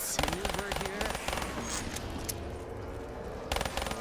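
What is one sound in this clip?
Monsters growl and snarl.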